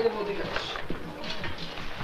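A paper bag rustles.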